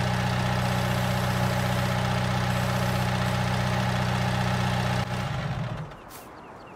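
A tractor engine idles with a steady hum.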